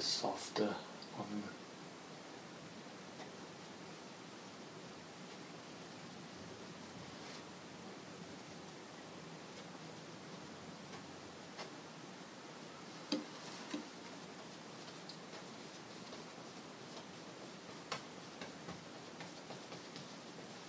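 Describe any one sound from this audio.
A paintbrush dabs and scrapes softly on canvas.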